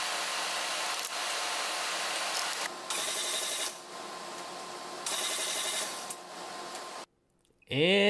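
A ratchet wrench clicks on engine bolts.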